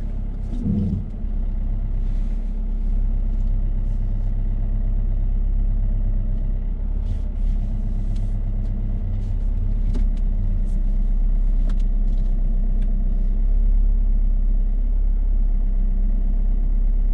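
A car engine hums low and steady from inside the cabin.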